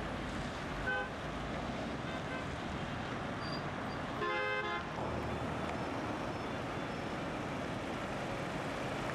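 Car engines hum as traffic passes along a busy street.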